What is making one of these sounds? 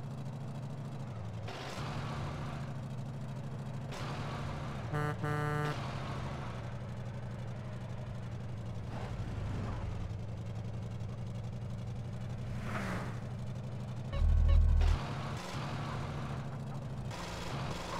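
A truck engine hums steadily as the truck drives along a road.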